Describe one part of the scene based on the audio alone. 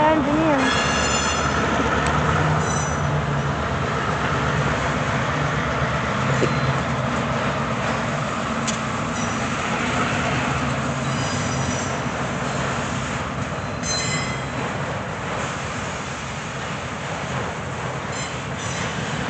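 Train wheels squeal now and then on the rails.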